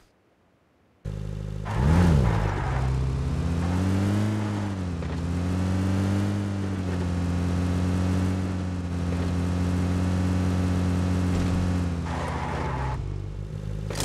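A vehicle engine starts and revs, then drones steadily as it drives.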